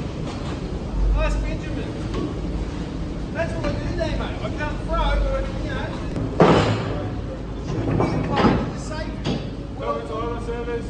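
Two men talk to each other nearby, outdoors.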